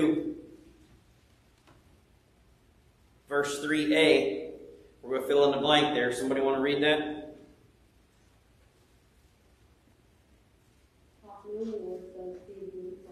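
A middle-aged man speaks calmly into a microphone in a large echoing room, with pauses between phrases.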